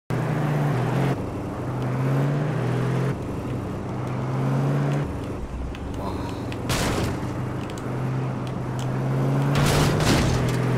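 Tyres crunch over rocky ground.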